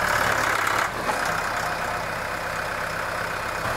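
A tractor's loader bucket scrapes and tears through soil and roots.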